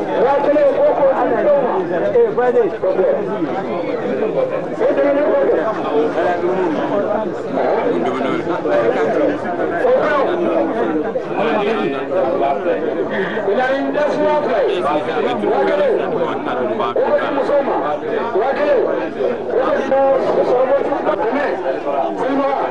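A large crowd of men murmur and talk over one another close by.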